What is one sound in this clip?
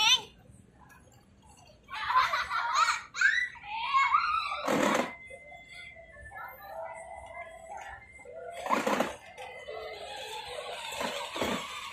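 Electric toy cars whir as they drive.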